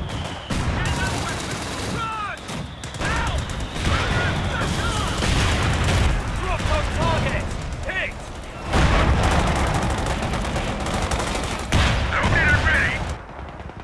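Explosions boom heavily.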